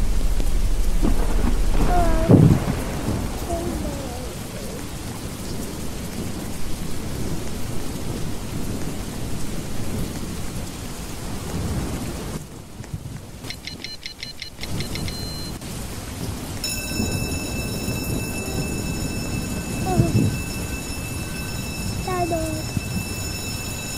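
A young boy talks into a headset microphone.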